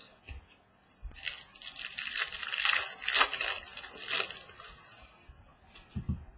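Plastic card wrappers crinkle and rustle in someone's hands.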